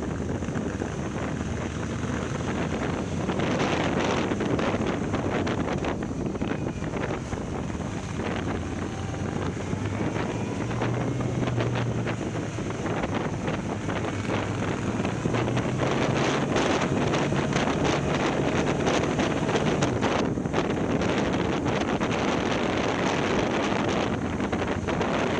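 A motorcycle engine hums steadily, rising and falling as the rider changes speed.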